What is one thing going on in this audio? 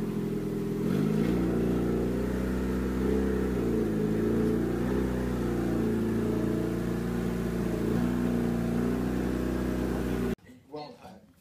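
A car engine rumbles steadily close by and revs now and then.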